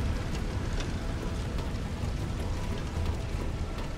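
Hands and boots clank on a metal ladder.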